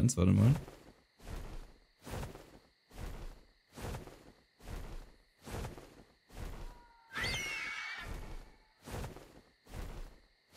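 Large wings beat in a steady, even rhythm.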